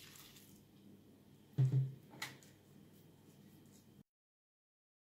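A spatula scrapes a sticky mixture from a bowl into a pan.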